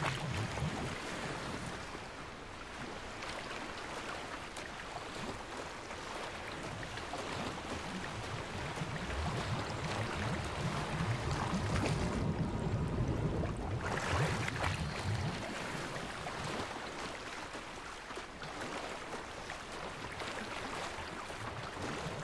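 Water splashes and swirls as a swimmer paddles through a lake.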